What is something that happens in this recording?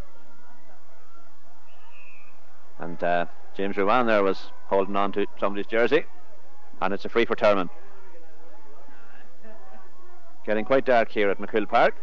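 A crowd murmurs in a stadium.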